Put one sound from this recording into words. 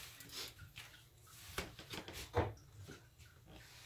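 Dishes clink and clatter at a sink.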